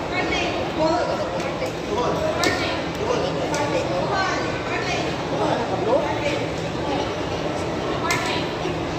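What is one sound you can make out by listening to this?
A woman speaks through a microphone and loudspeakers in a large echoing hall.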